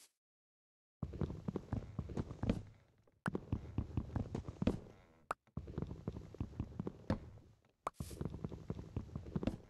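Wooden blocks are chopped with rapid knocking thuds.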